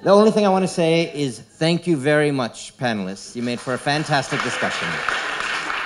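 A man speaks into a microphone, echoing in a large hall.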